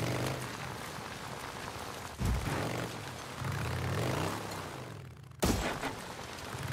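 A motorcycle engine revs and hums as the bike rides over rough dirt.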